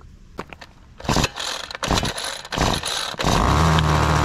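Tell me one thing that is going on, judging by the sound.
A starter cord is yanked several times with loud rasping pulls.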